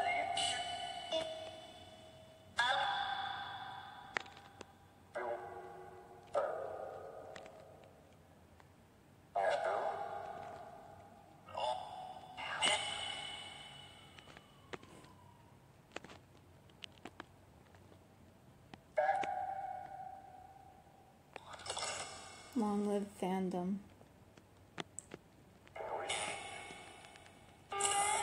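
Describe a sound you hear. Clanging metallic tones ring out from a small phone speaker and slowly fade, one after another.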